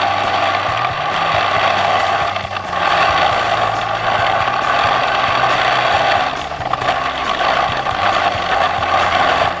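Snow crunches and hisses under the snowmobile's track.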